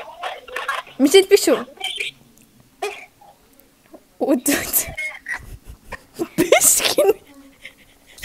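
Two young women laugh loudly.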